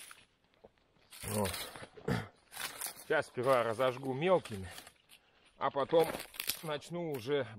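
Dry branches scrape and rustle over snow.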